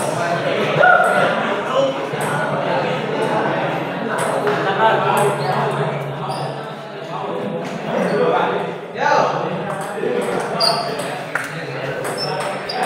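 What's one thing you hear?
A group of men chatters in an echoing room.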